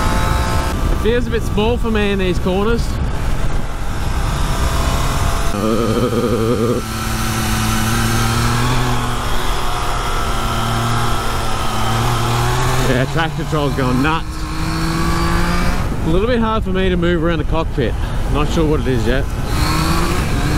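A motorcycle engine revs up and down through gear changes.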